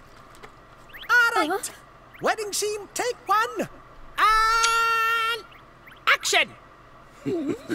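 A small creature talks in a high, excited, squeaky voice.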